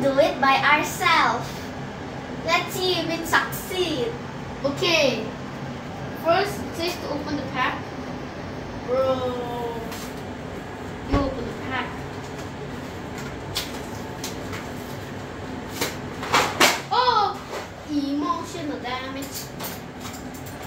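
A young girl laughs and talks, close by.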